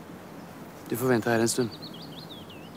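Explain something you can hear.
A man speaks briefly and firmly outdoors, close by.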